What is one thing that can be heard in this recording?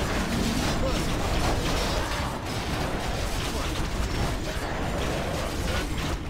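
Swords clash and spells crackle in a busy game battle.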